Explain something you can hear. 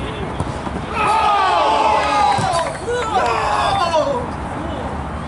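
Young men shout and cheer with excitement outdoors.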